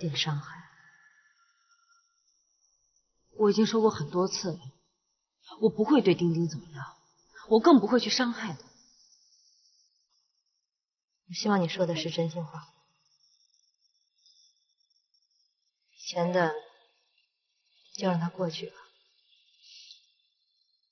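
A woman speaks calmly and firmly.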